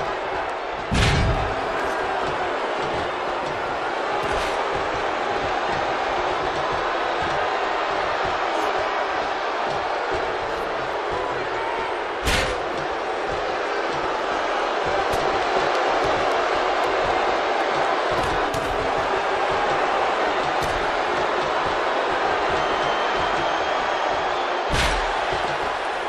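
Heavy thuds of bodies slamming down ring out now and then.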